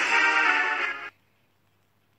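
A bright game victory jingle plays.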